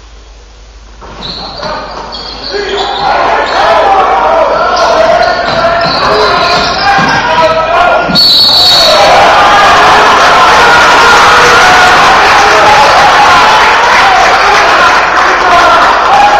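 A crowd cheers and shouts loudly in a large echoing gym.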